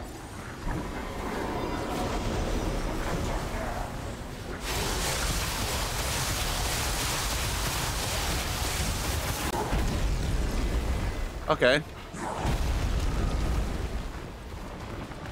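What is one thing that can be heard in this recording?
A heavy metal weapon swings and strikes with a crunching impact.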